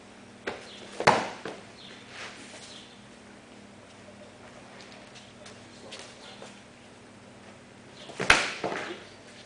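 A body slams onto a mat in a breakfall.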